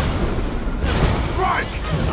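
A weapon strikes a creature with sharp impacts.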